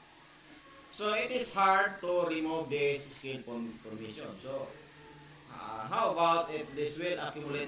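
A man lectures calmly, heard through a microphone.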